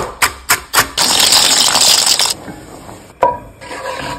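Liquid bubbles and fizzes vigorously in a pan.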